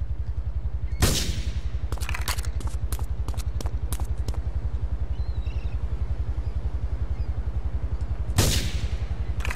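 A rifle fires sharp shots that echo away.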